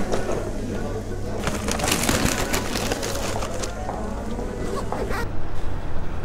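A zipper and fabric rustle close by.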